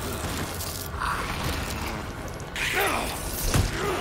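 A creature snarls and growls up close.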